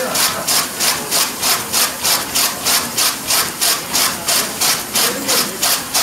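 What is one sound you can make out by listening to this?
Straw rustles as it is fed into a threshing machine.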